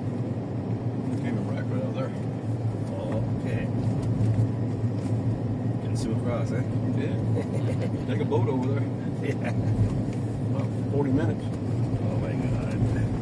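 A man talks calmly nearby inside the car.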